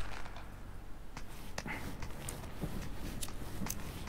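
Hands grip and pull on a rope.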